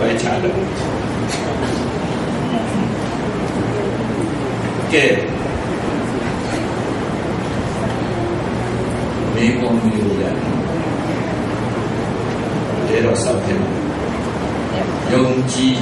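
An older man speaks calmly into a microphone, heard through a loudspeaker in an echoing room.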